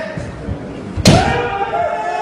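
A bamboo sword strikes hard with a sharp crack.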